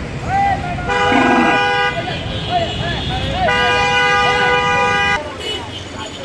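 Car horns honk loudly in long blasts.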